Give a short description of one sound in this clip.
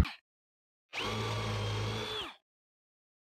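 A cordless drill whirs as it bores into wood.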